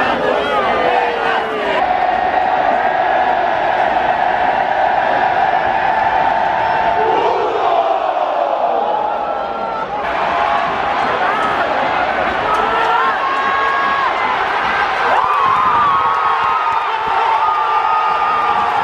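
A huge stadium crowd chants and sings loudly all around.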